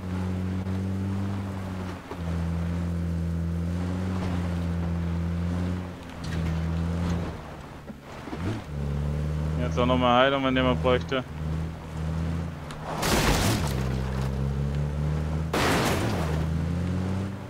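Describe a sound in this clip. Tyres crunch over rough ground.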